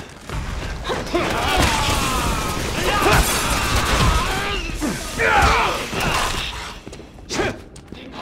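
Heavy blows thud during a fistfight.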